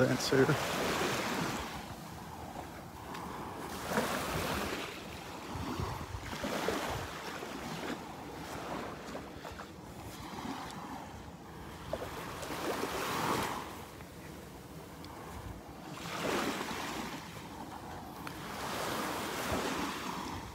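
Small waves lap gently onto the shore, rising and falling in soft swells.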